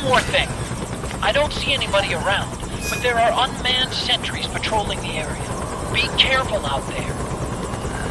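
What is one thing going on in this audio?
A man speaks calmly and low, close up.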